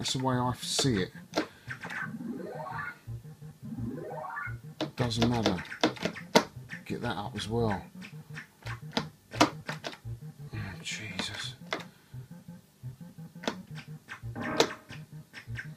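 An arcade game plays bleeping sound effects and rising chirps.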